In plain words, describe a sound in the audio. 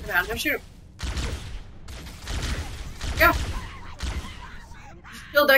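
Energy weapons fire in short, sharp bursts.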